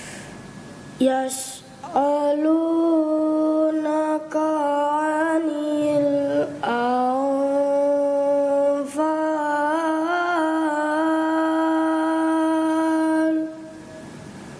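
A young boy chants in a long, melodic, sustained voice through a microphone.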